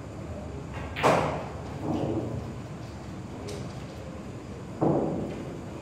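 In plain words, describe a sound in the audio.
A cue stick strikes a billiard ball with a sharp clack.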